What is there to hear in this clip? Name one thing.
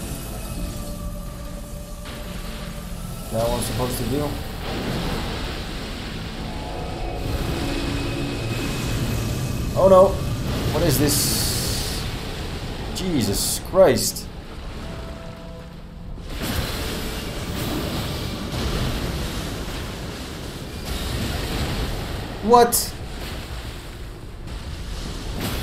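Magic blasts and explosions roar loudly.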